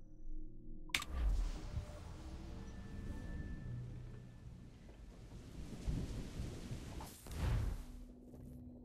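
Heavy rain pours down in a storm.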